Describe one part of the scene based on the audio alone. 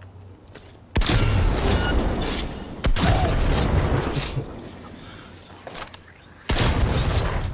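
Shotgun blasts boom in quick, loud bursts.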